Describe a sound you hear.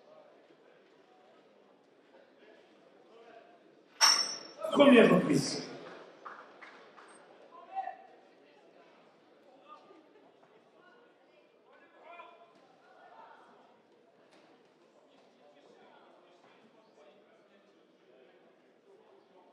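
A crowd murmurs steadily in a large hall.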